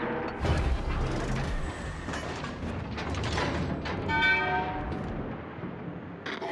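Explosions boom and rumble as shells hit a ship.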